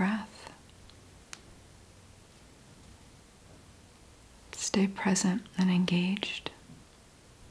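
A young woman speaks calmly and close to a microphone, in short bursts.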